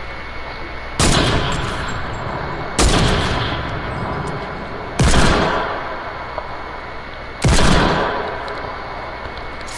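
Rifle shots crack loudly one at a time and echo away.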